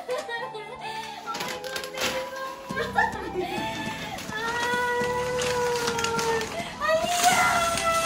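A young woman speaks excitedly and laughs close by.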